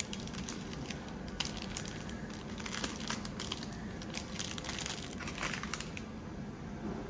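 Plastic packets rustle and crinkle close by.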